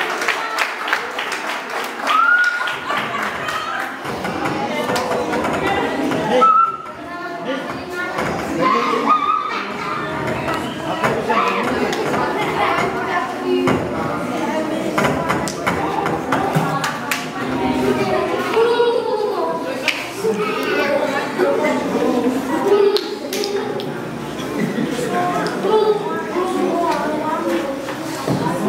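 A crowd of young people chatter and call out in a room with hard walls.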